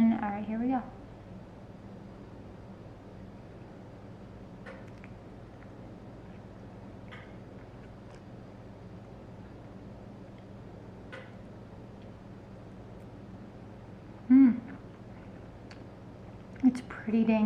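A young woman bites into soft bread and chews close by.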